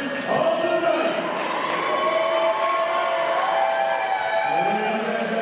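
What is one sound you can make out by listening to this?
A man announces loudly into a microphone, his drawn-out voice booming through loudspeakers in a large echoing hall.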